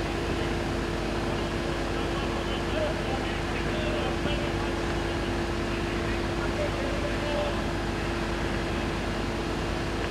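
A large fire crackles and roars.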